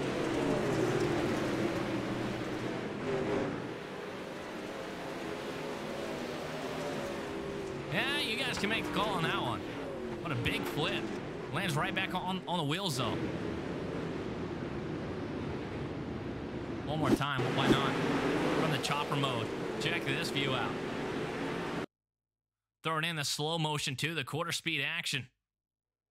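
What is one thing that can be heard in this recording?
Several race car engines roar loudly as they race past.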